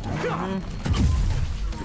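Laser blasts zap.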